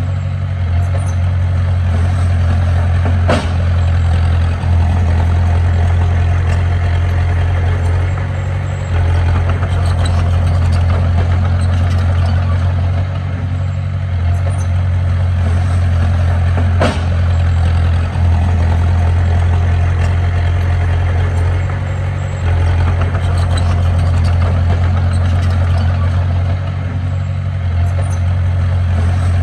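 A small bulldozer's diesel engine rumbles steadily nearby.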